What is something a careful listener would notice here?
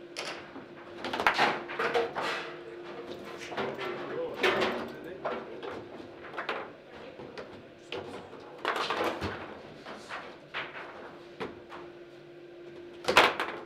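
Foosball rods slide and thud against the table.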